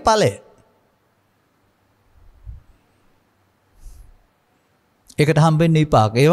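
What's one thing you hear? An elderly man speaks calmly and slowly into a microphone, with long pauses.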